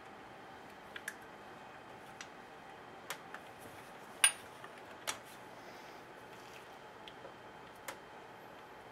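Metal tools click and clink against a chainsaw's parts.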